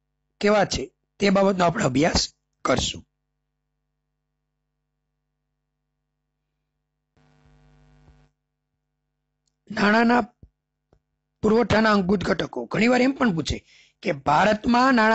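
A man talks steadily through a microphone, as in a lecture.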